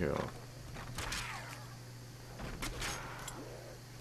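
A knife slashes and thuds into a zombie.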